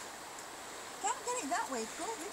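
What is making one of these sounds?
A woman talks to a dog in a high, coaxing voice close by.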